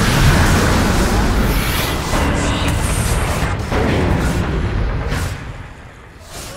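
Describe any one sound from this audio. Game spell effects whoosh and crackle.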